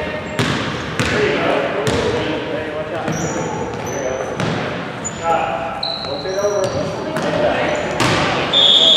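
Young girls shout and call out to each other across an echoing gym.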